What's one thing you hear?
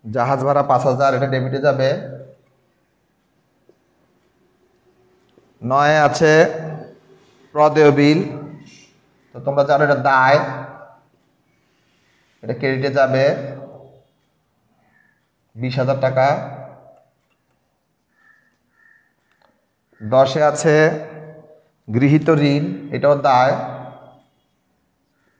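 A middle-aged man speaks calmly and clearly nearby, in short phrases with pauses.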